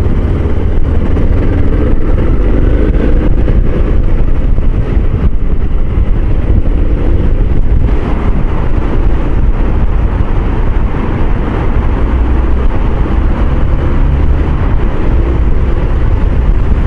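Wind buffets loudly against a microphone.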